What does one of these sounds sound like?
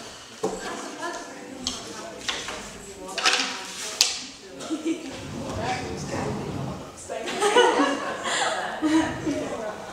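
A young woman laughs and talks.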